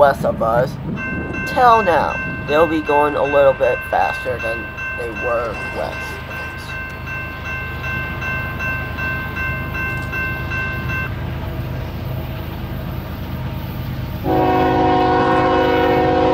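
A train horn blows long and steady in the distance.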